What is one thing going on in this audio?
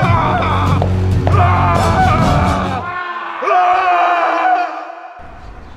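A man screams loudly in pain close by.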